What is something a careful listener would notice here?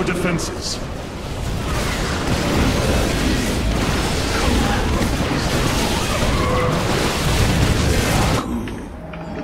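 Explosions boom and rumble in a loud battle.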